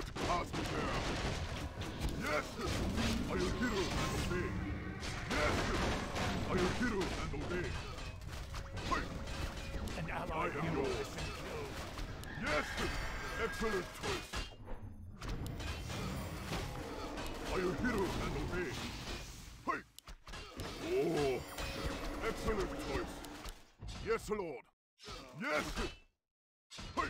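Magic spells crackle and blast.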